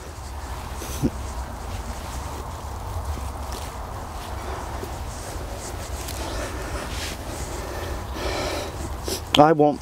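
Hands press and rustle in loose soil.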